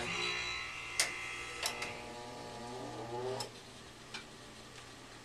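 Small metal clicks sound sharply a few times.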